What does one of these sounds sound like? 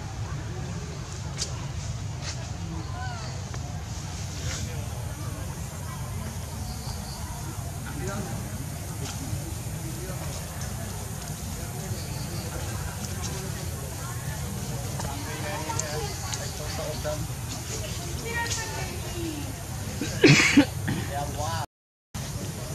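Leaves and branches rustle and snap as a monkey climbs.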